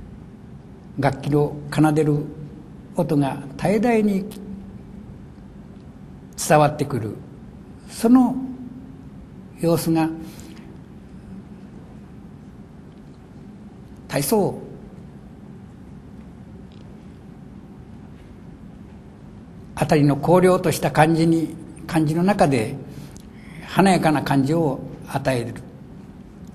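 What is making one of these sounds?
An elderly man reads aloud slowly and calmly into a microphone, with long pauses.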